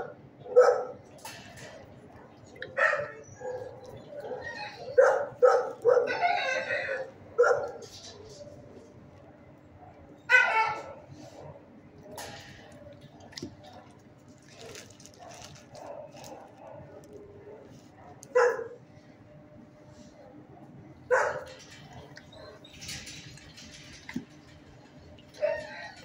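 A dog barks and yelps in short bursts close by.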